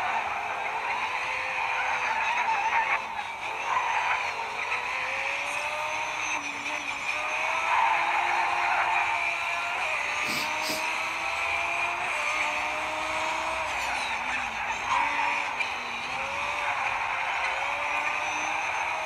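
A racing car engine revs and drones, rising and falling in pitch as it shifts gears.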